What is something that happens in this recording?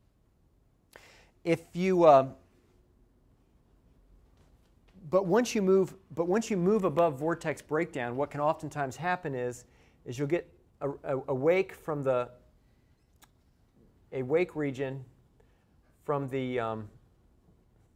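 A man lectures calmly through a clip-on microphone, in short bursts with pauses.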